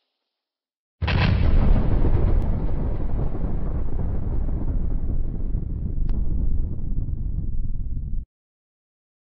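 A huge explosion booms and rumbles on.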